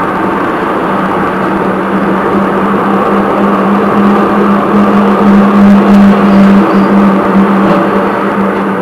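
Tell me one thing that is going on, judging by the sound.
Another tram passes close by going the other way.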